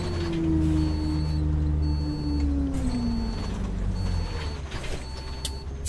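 A bus engine drones and winds down as the bus slows to a stop.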